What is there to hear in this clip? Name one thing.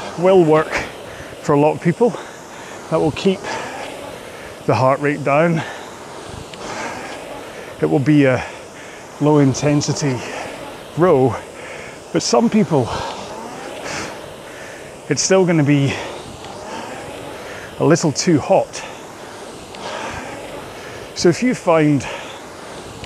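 A man speaks calmly into a clip-on microphone, close by.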